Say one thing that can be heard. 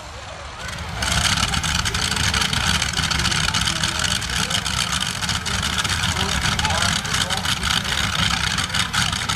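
A pulling tractor's engine screams at high revs with a rattling roar.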